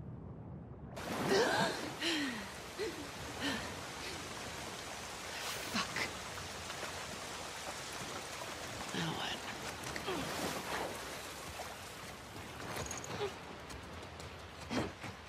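A man wades through deep water, splashing.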